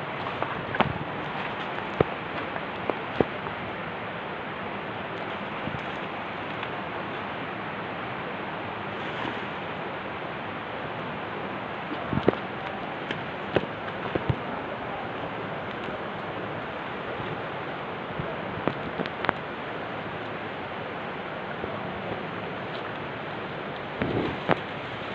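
Leaves and twigs rustle and snap as a man pushes through undergrowth.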